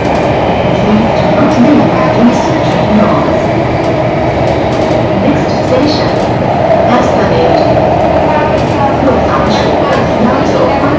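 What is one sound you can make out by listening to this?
A subway train rumbles and roars steadily along the tracks.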